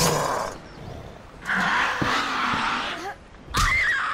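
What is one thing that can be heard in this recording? A machete strikes flesh with a wet slash.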